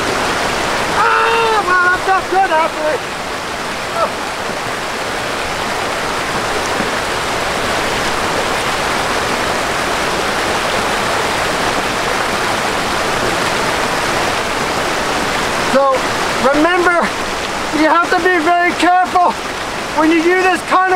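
A middle-aged man speaks with animation, close by and outdoors.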